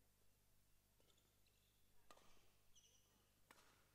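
A racket strikes a shuttlecock with a sharp pop.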